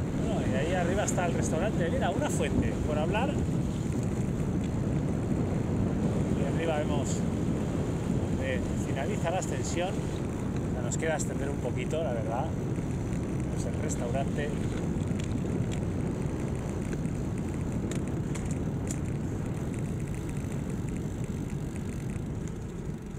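Wind rushes loudly past a microphone as a bicycle speeds along a road.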